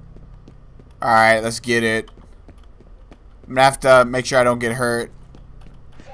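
A young man speaks loudly with animation into a close microphone.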